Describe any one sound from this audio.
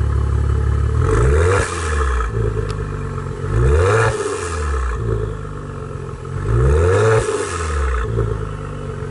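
A car engine revs up sharply three times and falls back.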